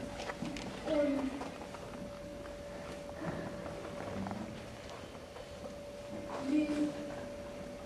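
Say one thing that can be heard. A young woman speaks softly.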